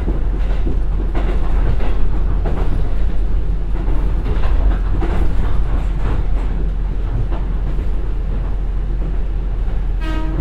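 A diesel train engine rumbles steadily.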